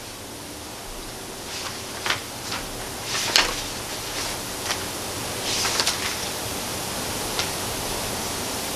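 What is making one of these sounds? Book pages rustle.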